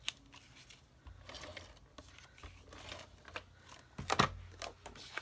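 A plastic case clicks and knocks.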